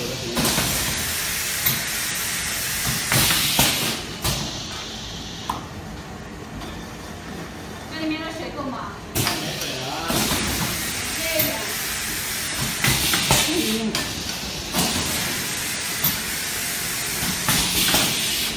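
Metal cans rattle and clink against each other on a moving conveyor.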